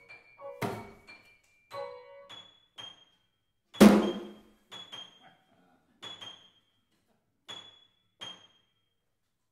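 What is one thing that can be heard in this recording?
A piano plays sparse, single notes.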